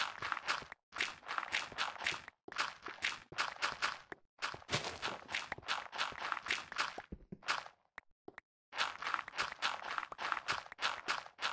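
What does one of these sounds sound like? Rapid gritty crunching of dirt being dug comes in quick bursts.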